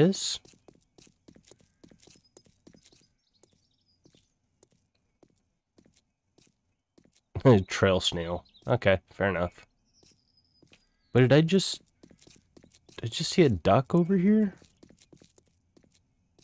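Footsteps crunch on a gravel road.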